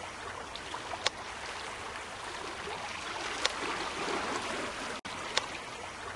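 Short electronic clicks sound as menu buttons are tapped.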